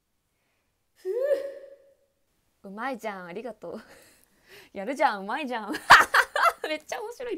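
A young woman laughs brightly close to a microphone.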